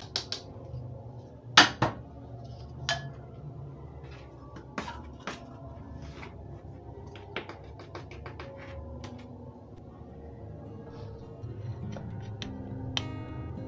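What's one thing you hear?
Utensils clink and knock against a bowl now and then.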